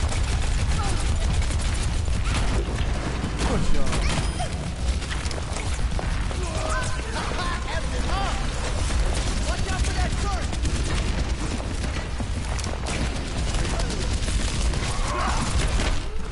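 Blasts and impacts boom amid the shooting.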